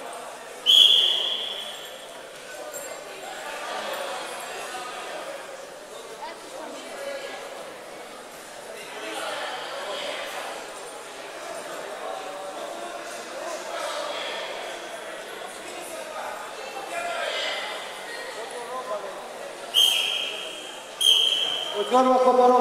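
A referee blows short, sharp whistle blasts.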